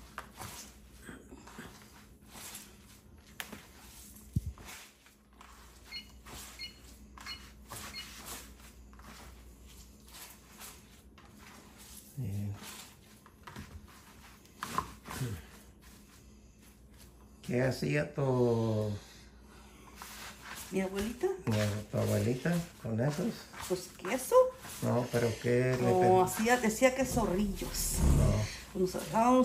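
Hands squeeze and knead crumbly dough in a bowl with soft squishing sounds.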